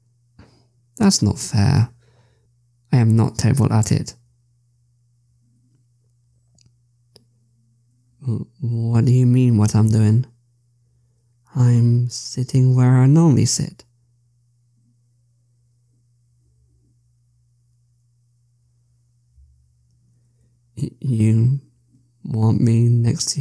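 A young man speaks close to a microphone in short, expressive bursts.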